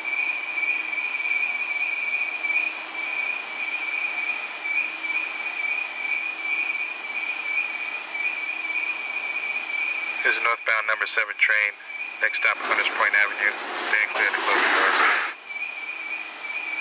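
A subway train hums steadily while standing still.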